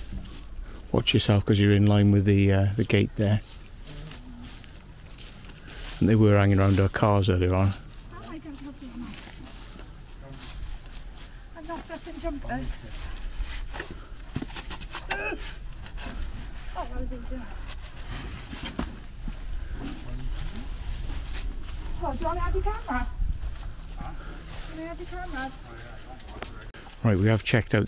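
A middle-aged man speaks loudly and close to the microphone.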